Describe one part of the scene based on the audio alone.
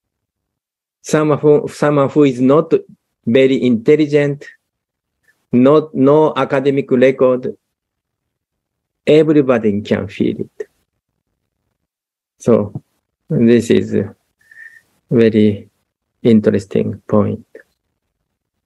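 A middle-aged man talks calmly and warmly through an online call.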